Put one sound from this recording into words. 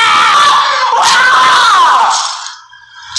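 A young man shouts with excitement up close.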